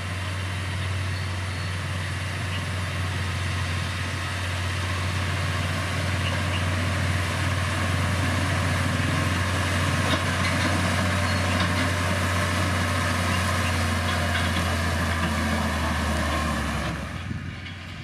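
A blade scrapes and pushes loose gravel.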